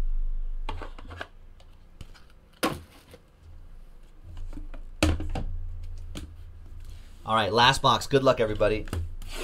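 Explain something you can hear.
Cardboard boxes are handled and shuffled, knocking and scraping.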